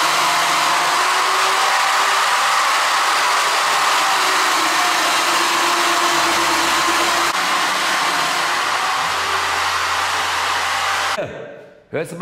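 A power tool runs with a steady loud whir.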